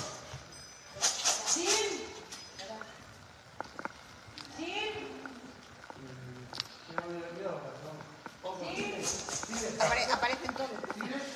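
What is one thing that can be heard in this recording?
A woman calls out to the dogs.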